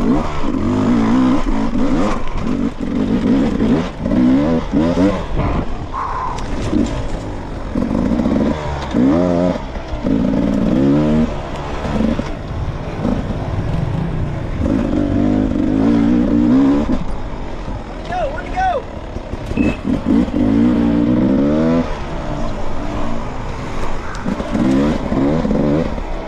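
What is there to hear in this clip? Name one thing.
Tyres crunch and clatter over loose rocks and dirt.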